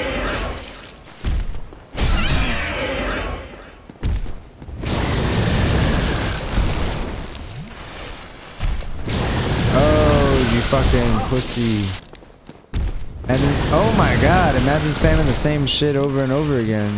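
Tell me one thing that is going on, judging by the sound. A dragon roars loudly.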